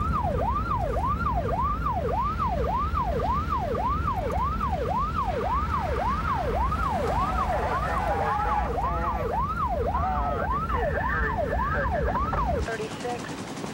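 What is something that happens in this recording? A police siren wails loudly and steadily, rising and falling fast.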